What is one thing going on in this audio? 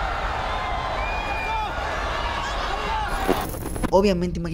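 A crowd cheers and roars loudly in a large arena.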